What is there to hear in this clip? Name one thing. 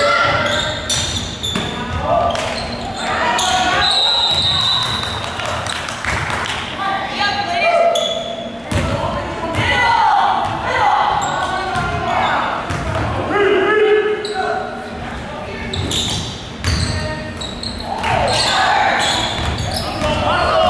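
Young players shout and call out, echoing in a large gym.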